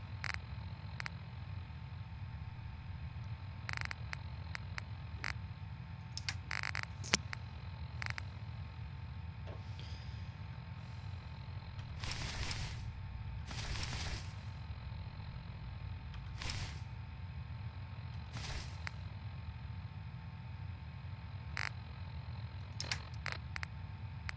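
Short electronic menu clicks and beeps sound as items are scrolled through.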